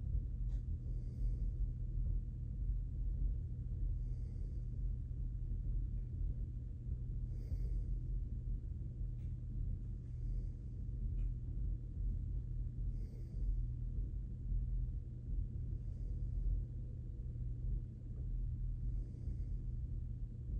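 A person breathes slowly and softly close by, every few seconds.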